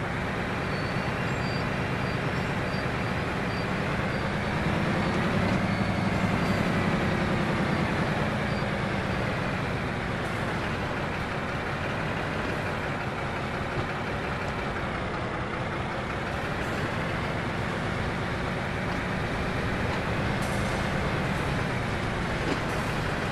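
A locomotive engine hums steadily from inside the cab.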